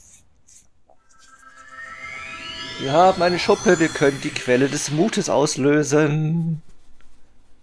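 A shimmering magical sound rises and swells.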